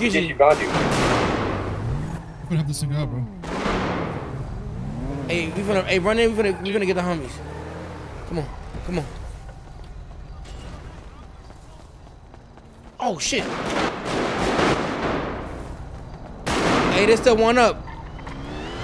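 A young man talks loudly and with animation into a microphone.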